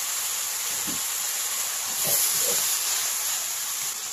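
Chopsticks stir and scrape food in a pan.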